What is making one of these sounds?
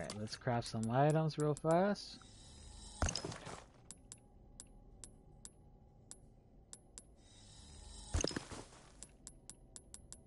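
Menu selection clicks tick sharply and repeatedly.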